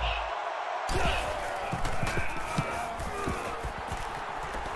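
Football players' pads clash as they collide.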